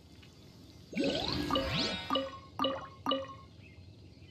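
Bright chimes ring quickly in a row.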